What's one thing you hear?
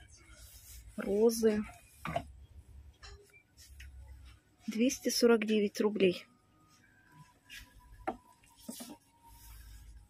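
A wooden tray knocks softly as it is picked up and handled.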